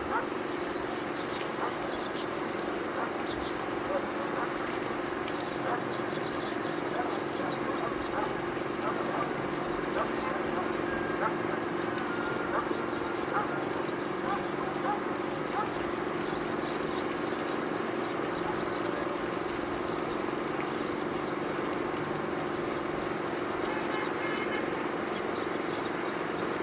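A distant city hums steadily.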